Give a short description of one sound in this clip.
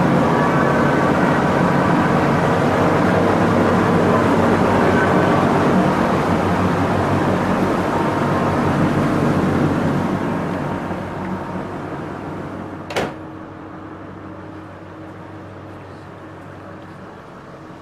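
A ship's engine hums low and steady.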